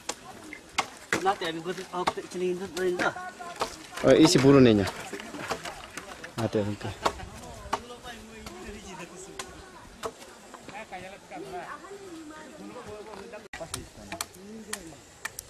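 A hammer knocks on wooden posts.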